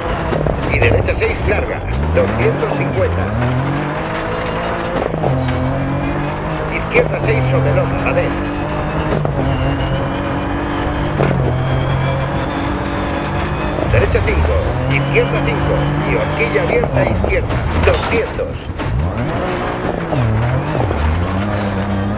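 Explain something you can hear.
A rally car engine revs hard, rising and falling through the gears.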